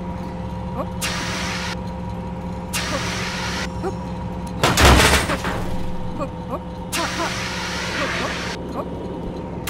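A rocket boost hisses in short bursts.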